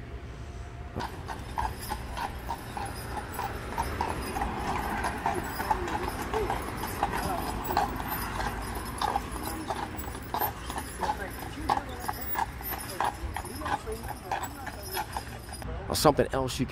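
Carriage wheels rumble along the road.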